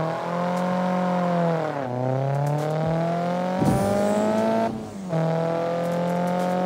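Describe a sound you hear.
A car engine revs hard, dropping in pitch at each gear change and climbing again.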